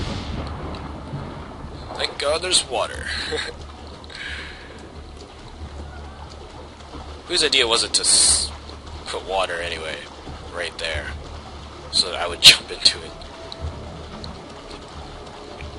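Water splashes with steady swimming strokes.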